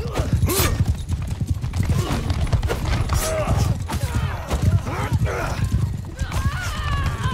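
Horse hooves pound steadily at a gallop.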